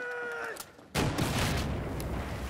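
Bullets strike metal and spark.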